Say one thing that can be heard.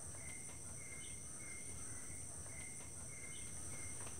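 Footsteps climb a few stone steps.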